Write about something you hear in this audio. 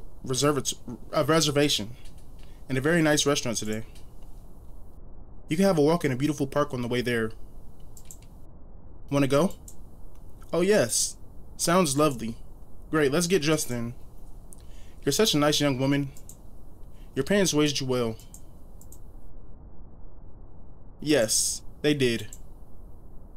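A man reads out lines close to a microphone, with animation, in short bursts.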